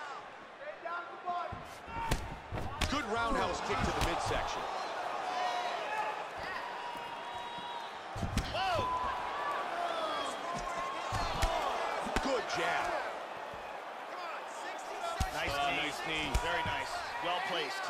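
A crowd cheers and murmurs in a large arena.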